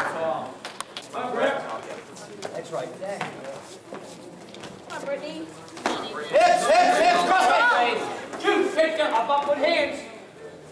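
Wrestlers' shoes squeak and thud on a mat.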